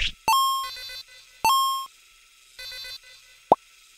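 A game message box chimes and blips as text types out.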